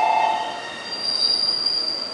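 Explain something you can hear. Train brakes squeal as a train comes to a stop.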